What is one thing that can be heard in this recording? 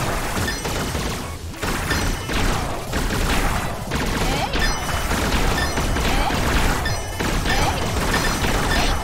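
Rapid electronic shots fire and chime repeatedly.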